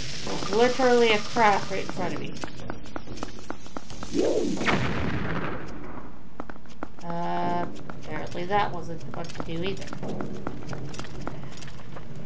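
Quick footsteps patter on a stone floor.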